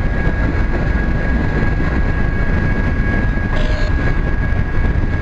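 Train wheels squeal steadily on the rails.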